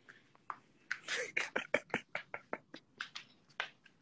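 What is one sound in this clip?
A man laughs in short bursts, close to a phone microphone.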